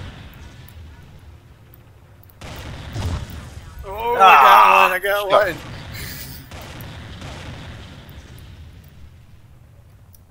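Weapons fire and explosions boom in a game battle.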